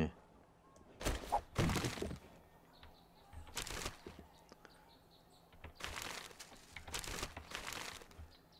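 Short rustling bursts sound as piles and shelves are searched.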